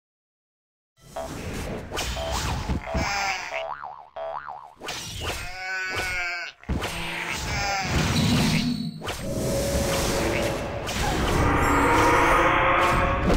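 Magic blasts and weapon strikes burst in a fast fight.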